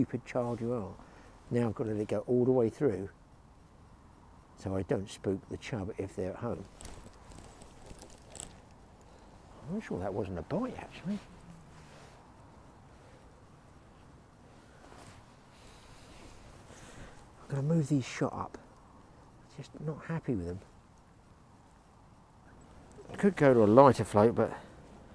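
A man talks calmly close by, in short bursts.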